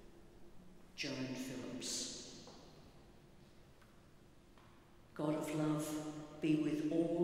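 A man sings or chants through a microphone in a large echoing church.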